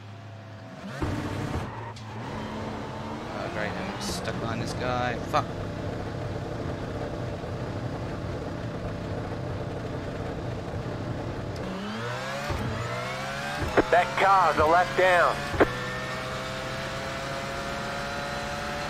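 A race car engine roars as the car pulls away and speeds up.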